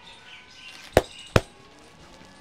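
Joints crack sharply twice.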